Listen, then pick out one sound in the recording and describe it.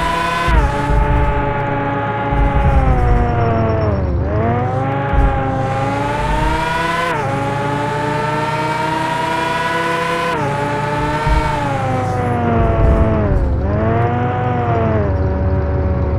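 A sports car engine revs hard, rising in pitch and dropping with each gear change.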